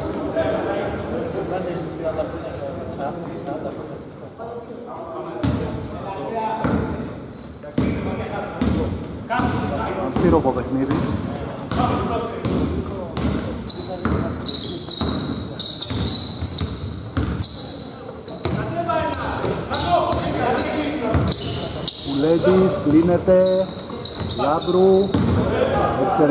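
Men call out to each other across the hall.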